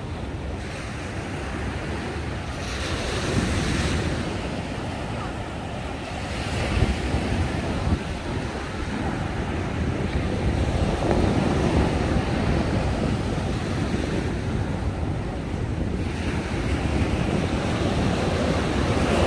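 Waves wash onto a beach.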